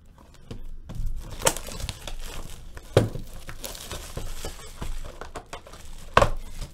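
Plastic wrap crinkles and tears as a box is unwrapped.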